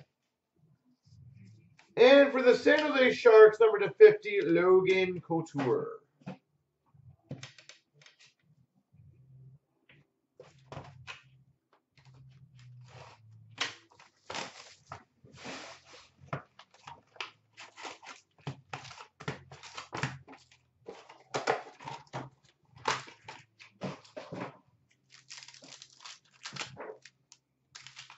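Cardboard boxes and card packs rustle and tap as they are handled.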